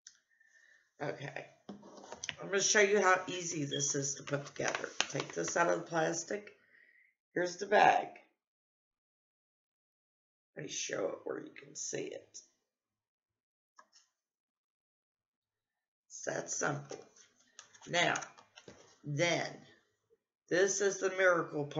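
A woman speaks calmly and close up, with pauses.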